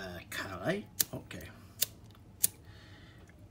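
A lighter clicks several times.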